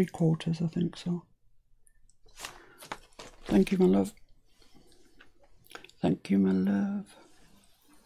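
A middle-aged woman talks calmly into a close microphone.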